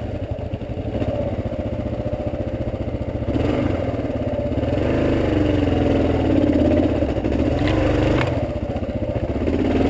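A motorcycle engine putters steadily at low revs, then revs up.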